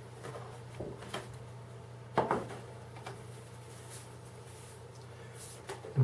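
A foam sheet is lifted off with a soft rustle.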